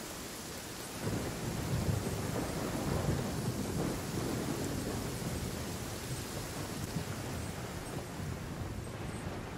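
Wind rushes steadily past a glider.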